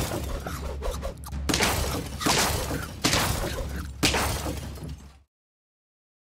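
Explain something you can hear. Cartoon battle sound effects clash and thud rapidly.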